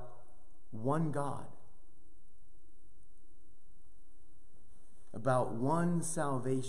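A middle-aged man speaks with animation close to a microphone, in a slightly echoing room.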